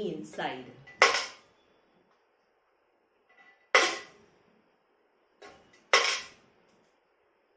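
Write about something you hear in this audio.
A coin drops into a small metal money box with a bright clink.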